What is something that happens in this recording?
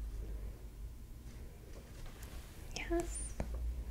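Paper rustles in a young woman's hands.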